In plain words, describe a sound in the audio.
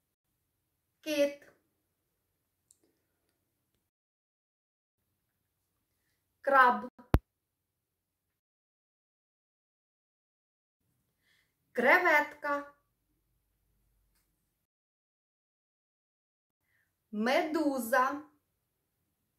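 A woman speaks single words slowly and clearly, close to a microphone, with pauses between them.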